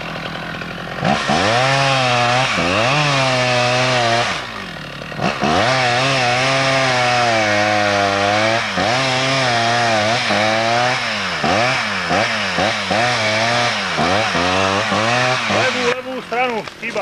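A chainsaw revs loudly up and down while cutting into a tree trunk.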